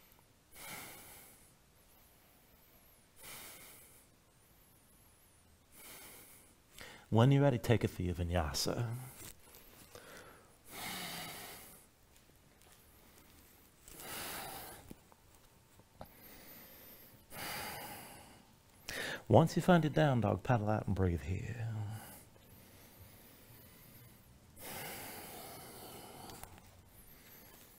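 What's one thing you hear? A man breathes deeply and slowly, in long audible breaths.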